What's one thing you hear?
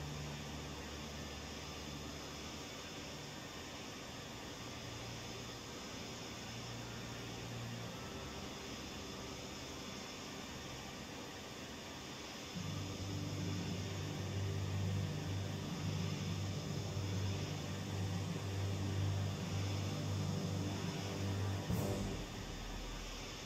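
Jet engines roar steadily.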